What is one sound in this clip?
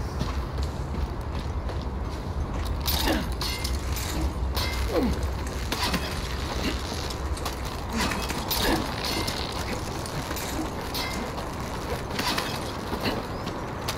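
Metal gear clinks and clicks while someone climbs a rope.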